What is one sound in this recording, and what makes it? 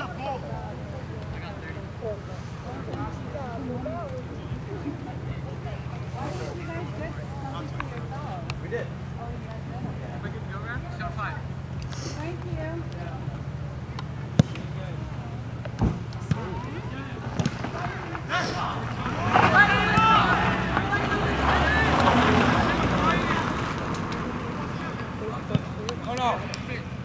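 Young men shout and call out across an open field.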